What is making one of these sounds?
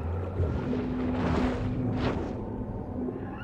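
Water rushes in two swift whooshes as a shark swims past.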